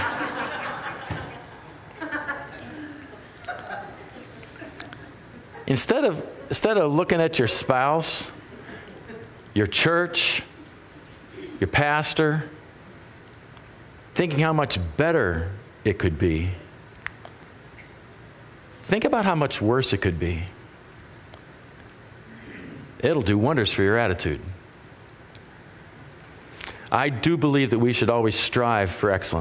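A middle-aged man speaks with animation through a microphone, in short bursts with pauses, in a slightly echoing room.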